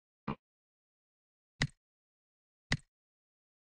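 Menu buttons click softly.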